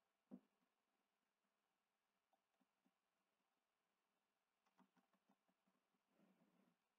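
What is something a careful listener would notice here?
Short electronic menu blips sound as selections are made.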